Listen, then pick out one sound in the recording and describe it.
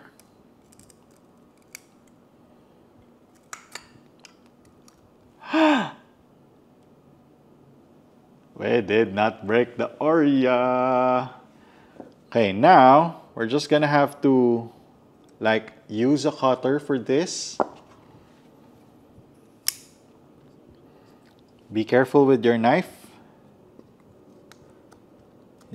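Small plastic parts click against each other.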